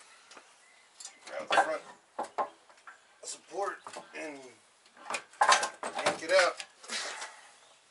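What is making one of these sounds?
Plastic car parts clatter and knock.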